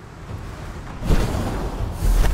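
A magic spell bursts with an icy crackle.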